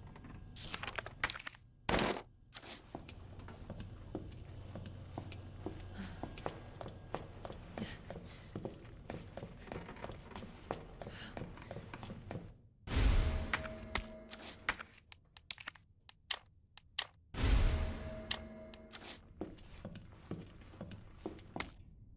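Footsteps tap on a hard floor at a steady pace.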